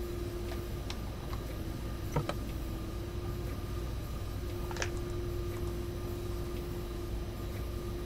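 A windscreen wiper sweeps across wet glass.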